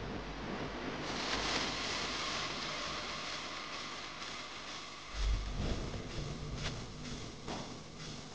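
Loud electronic dance music thumps over a large sound system.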